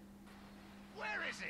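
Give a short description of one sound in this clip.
A young man speaks briefly into a headset microphone.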